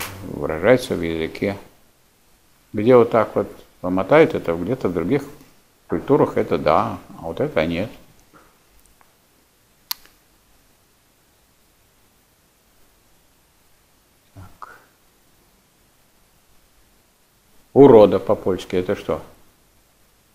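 An elderly man speaks calmly at a distance in a room with a slight echo.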